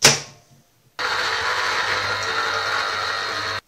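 A juicer whirs as a lime is pressed onto it.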